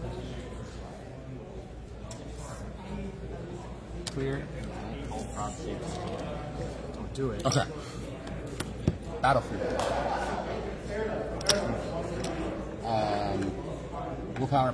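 Men talk casually nearby.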